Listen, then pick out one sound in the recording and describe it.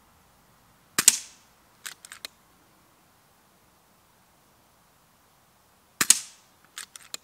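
An air rifle fires with a sharp crack.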